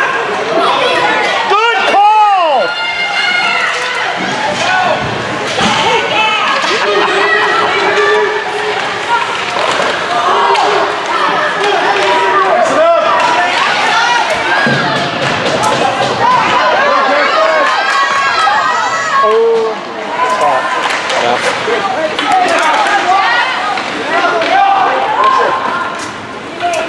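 A crowd of spectators shouts and cheers in an echoing rink.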